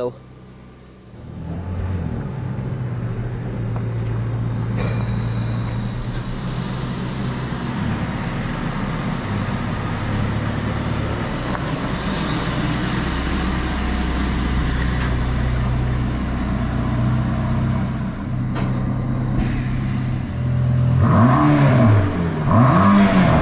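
A sports car engine rumbles deeply at idle nearby.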